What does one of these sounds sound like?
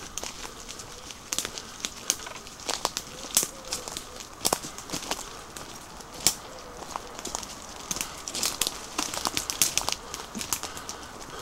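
Footsteps crunch on dry leaves along a path.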